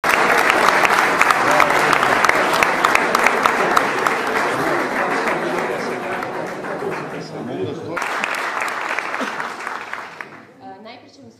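An audience claps and cheers loudly in an echoing hall.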